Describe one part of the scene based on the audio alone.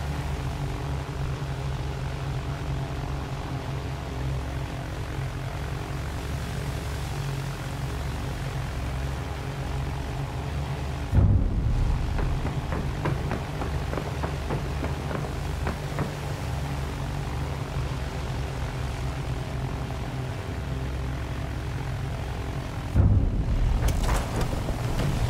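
An airship's engines drone steadily overhead.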